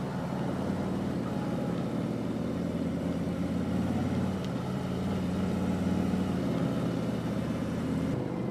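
A motorcycle engine rumbles steadily up close as it cruises along.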